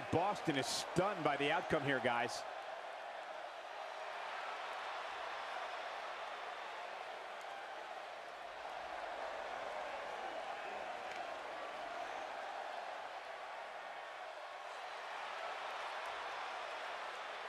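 A large crowd cheers and roars throughout a big echoing arena.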